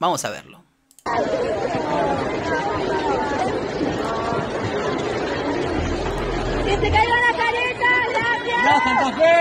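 A crowd murmurs and cheers in a large echoing room.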